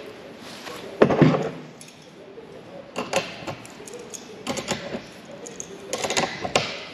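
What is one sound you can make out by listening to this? Metal pliers click and clatter against metal parts.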